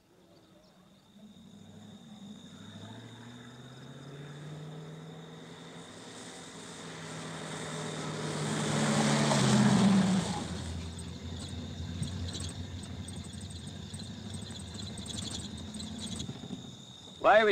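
A car engine approaches with a rising hum and then idles.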